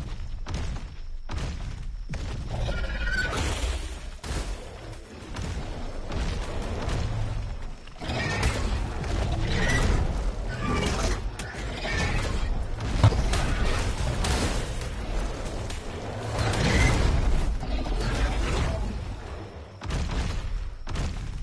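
A large creature's heavy footsteps thud on the ground.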